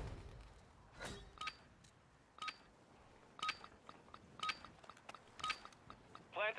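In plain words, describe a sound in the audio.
Short electronic beeps count down at an even pace.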